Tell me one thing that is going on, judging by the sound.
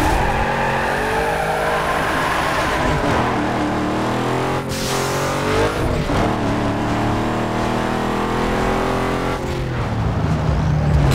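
A car engine revs high and climbs in pitch, dropping briefly at each gear change.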